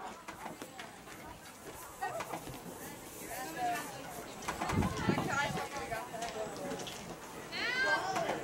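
Adult men and women chat at a distance from outdoor bleachers.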